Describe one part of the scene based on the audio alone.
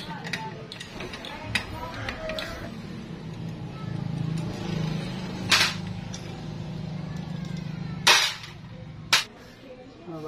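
Metal parts clink sharply.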